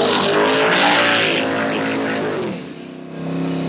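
Tyres screech and squeal on the pavement.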